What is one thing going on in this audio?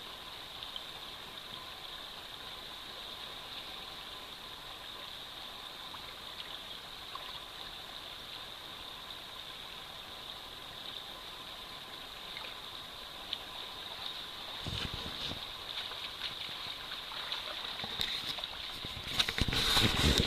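A shallow stream trickles and babbles over stones.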